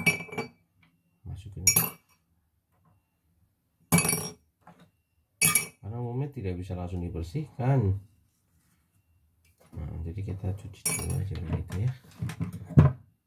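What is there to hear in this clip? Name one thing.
Small metal parts clink as they are handled.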